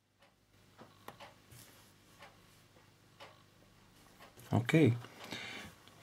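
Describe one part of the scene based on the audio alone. A finger taps lightly on a phone's touchscreen.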